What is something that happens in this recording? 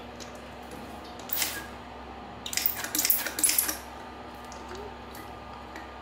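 Metal parts clink and scrape together.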